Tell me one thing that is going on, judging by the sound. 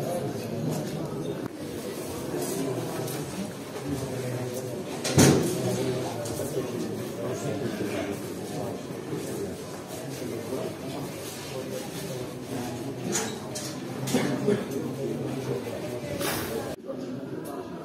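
A crowd of men talks and murmurs nearby.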